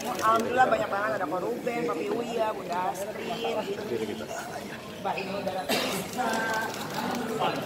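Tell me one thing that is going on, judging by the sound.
Several men and women talk over one another nearby, in a jostling crowd.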